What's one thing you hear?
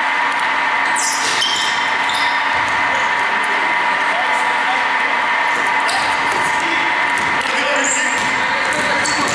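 Sneakers squeak on a hardwood floor as basketball players run.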